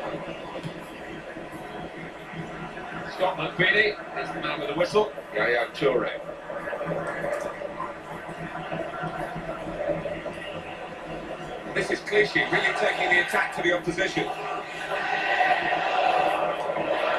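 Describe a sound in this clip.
A stadium crowd roars steadily through a television speaker, swelling near the end.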